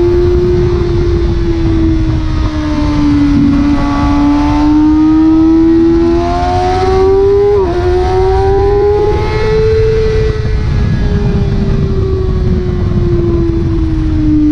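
A motorcycle engine roars at high revs, rising and falling in pitch.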